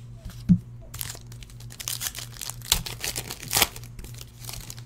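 Plastic and foil wrappers crinkle as they are torn open.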